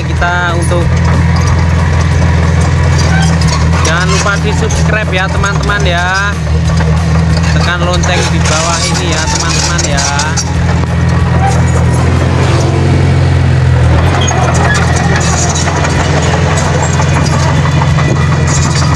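A bulldozer's diesel engine rumbles steadily up close.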